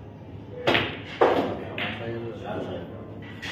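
Billiard balls clack together.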